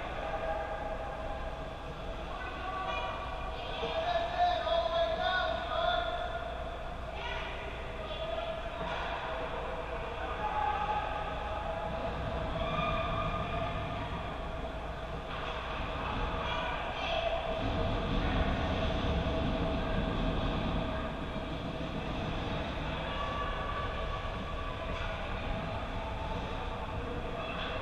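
Young men call out to each other across a large echoing rink.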